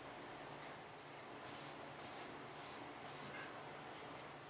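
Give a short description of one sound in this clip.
A cloth rubs softly back and forth across wood.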